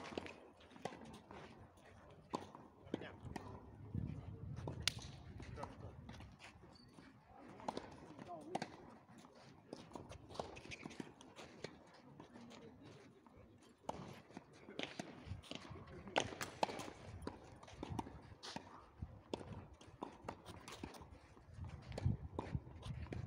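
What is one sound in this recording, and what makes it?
Tennis balls are struck with rackets in sharp pops, outdoors.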